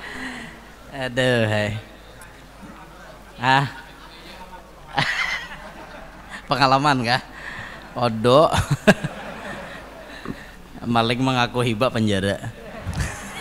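A young man speaks and chuckles into a microphone in short bursts.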